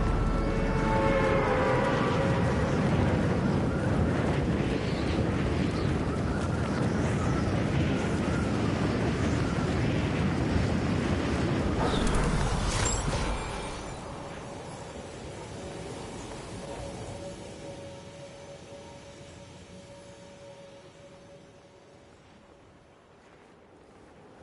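Wind rushes loudly during a fall, then drops to a softer, fading whoosh.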